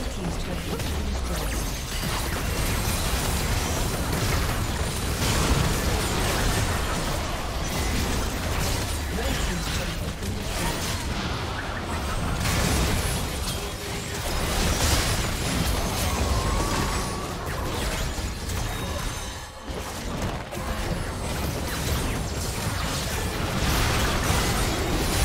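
Magic blasts, clashing weapons and explosions crackle and boom in a busy fantasy battle.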